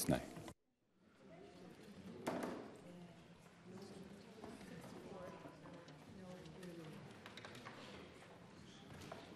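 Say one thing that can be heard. Quiet, distant voices murmur in a large echoing hall.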